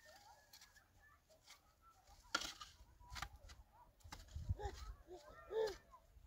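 A shovel scrapes and digs into frozen earth.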